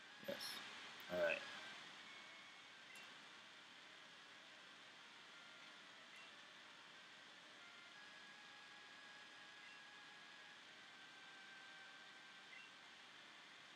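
Short electronic beeps sound as letters are picked from a menu.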